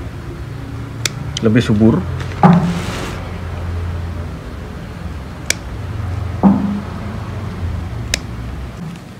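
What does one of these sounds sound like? Scissors snip small stems with sharp clicks.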